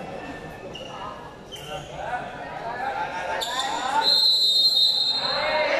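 A crowd of young people chatters and cheers in a large echoing hall.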